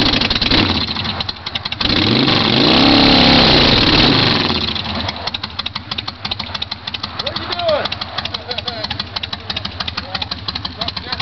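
A motorcycle engine idles with a rapid, loping rumble.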